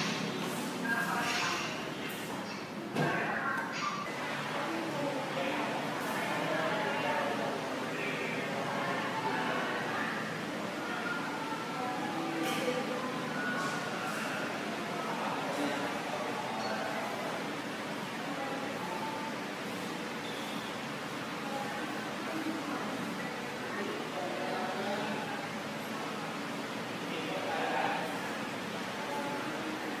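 A woman sings into a microphone in a room with some echo.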